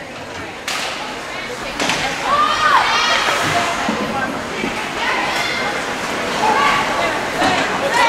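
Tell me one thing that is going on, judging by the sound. Hockey sticks click sharply against the puck.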